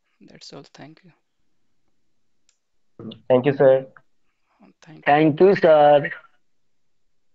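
A man speaks through an online call, in short bursts.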